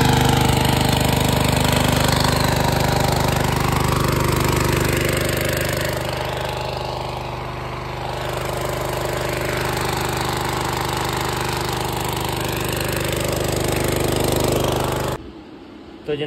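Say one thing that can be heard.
A petrol water pump engine runs loudly and steadily outdoors.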